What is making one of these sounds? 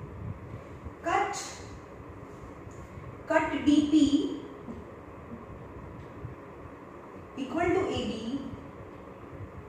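A young woman speaks briefly and calmly nearby.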